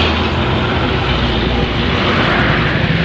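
A heavy truck engine rumbles nearby.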